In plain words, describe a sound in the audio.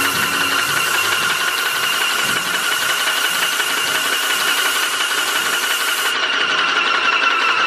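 A paint sprayer hisses and whines steadily.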